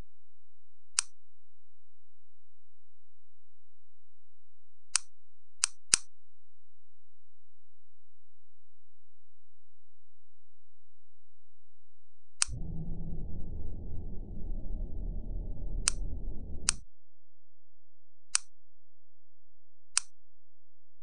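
Short sharp interface clicks sound now and then.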